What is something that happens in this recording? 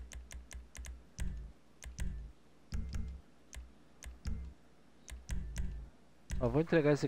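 Short clicks tick as menu options are chosen.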